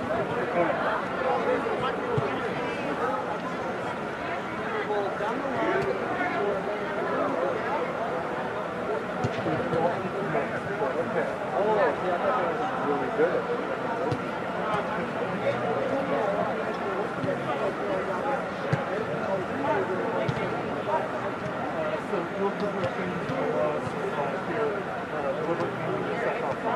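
Young players call out to each other from a distance in a large echoing hall.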